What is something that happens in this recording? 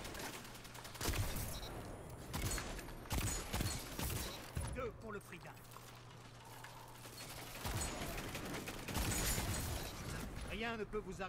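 Gunshots fire in quick bursts, loud and close.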